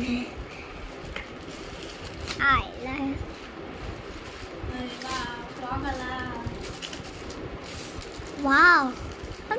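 A plastic wrapper crinkles and rustles as it is opened.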